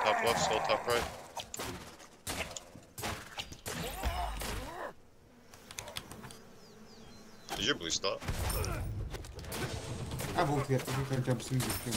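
Game weapons clash and strike in quick bursts.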